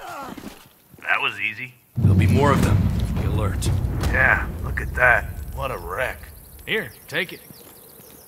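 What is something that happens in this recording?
A man speaks calmly over a radio.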